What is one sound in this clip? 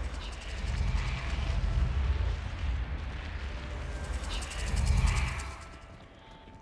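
Footsteps tap on a stone floor in an echoing hall.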